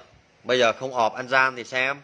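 A device button clicks as it is pressed.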